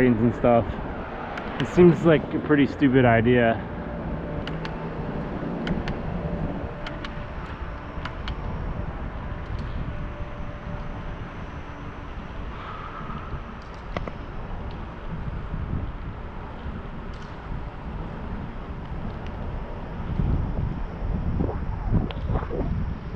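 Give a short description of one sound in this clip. Wind rushes past a microphone on a moving bicycle.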